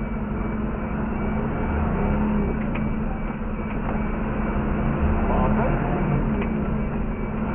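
A car engine hums steadily as the car drives slowly down a street.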